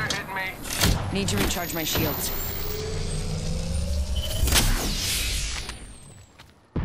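A device hums and crackles as it charges up.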